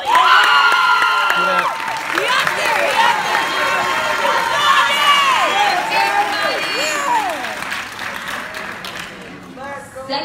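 A crowd of young people cheers and whoops loudly.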